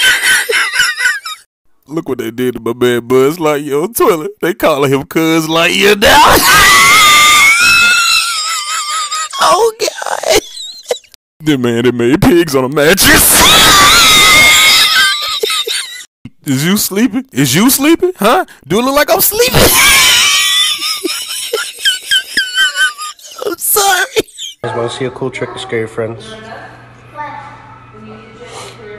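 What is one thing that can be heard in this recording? A woman laughs loudly close to a microphone.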